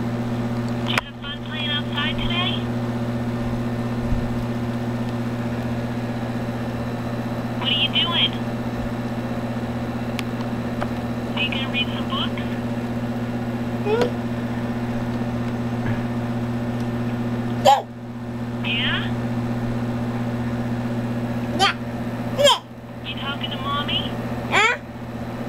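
A small electronic device plays short, high chirping tunes.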